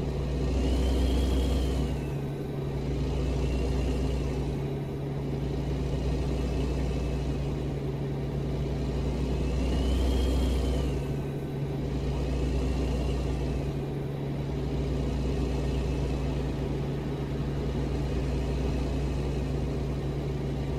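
Trucks rush past in the opposite direction with a whooshing sound.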